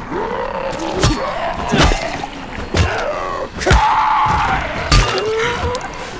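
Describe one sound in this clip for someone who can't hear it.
A metal pipe strikes a body with heavy thuds.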